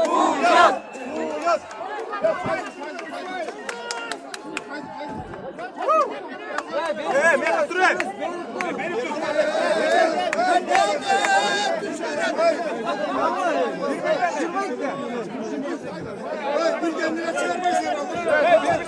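A crowd of men talks and shouts loudly all around, close by.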